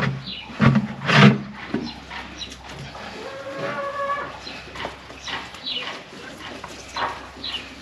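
A rope scrapes as it is pulled up.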